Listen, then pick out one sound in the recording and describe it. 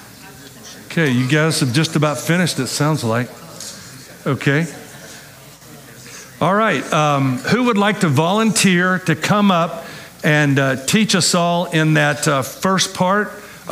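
A middle-aged man speaks to an audience with animation.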